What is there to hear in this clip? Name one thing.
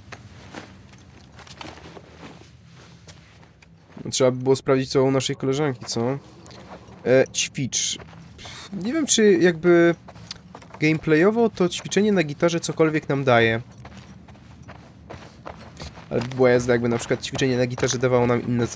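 Footsteps tread softly on carpet.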